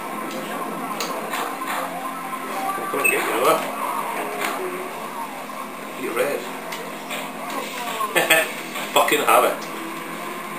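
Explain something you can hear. Motorbike engines whine through a television speaker.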